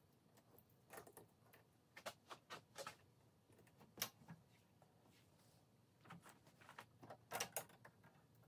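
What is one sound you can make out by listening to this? Metal valve parts clink and clatter as they are handled.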